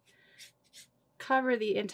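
A paintbrush swishes in a jar of water.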